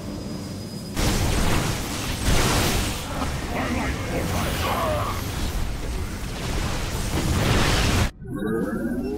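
Explosions boom in a game battle.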